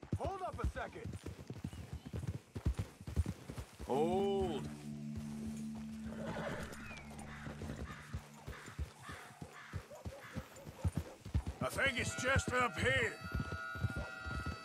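Horse hooves thud on a dirt path at a steady canter.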